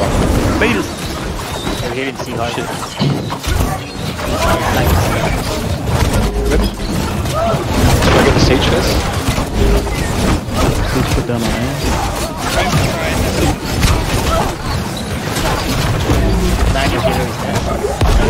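Weapons clash and strike repeatedly in a chaotic battle.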